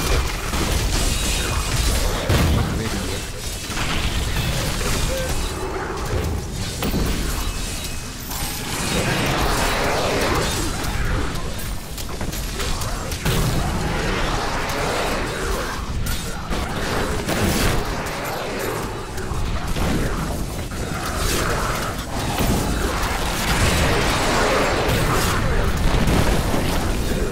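Magic spells crackle and blast in rapid bursts.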